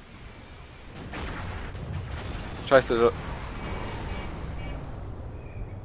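A vehicle engine rumbles as it drives over rough ground.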